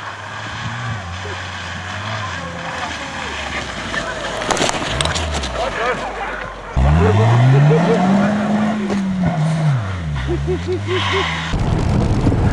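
A car engine revs hard and rises and falls in pitch.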